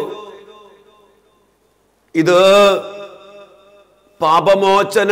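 A man chants in a sustained, singing voice through a microphone, with a long echo.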